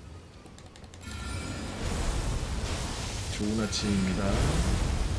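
Magic spells whoosh and rumble in a game.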